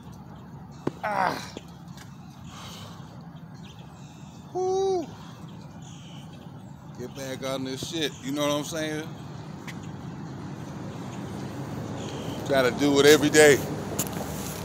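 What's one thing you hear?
A young man speaks loudly outdoors in short bursts.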